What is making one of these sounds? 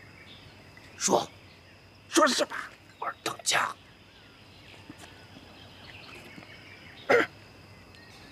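A middle-aged man speaks harshly and with animation.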